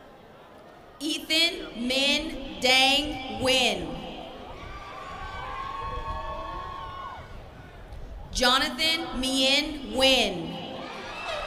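A woman reads out over a loudspeaker in an open outdoor space.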